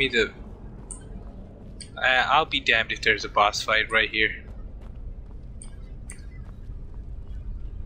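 Footsteps tread on stone in a large echoing hall.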